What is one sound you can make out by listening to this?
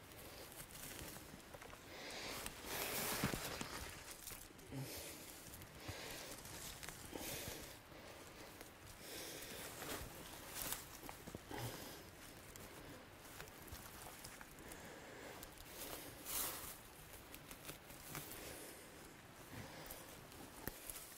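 Leaves and twigs rustle and crackle as a person rummages through undergrowth.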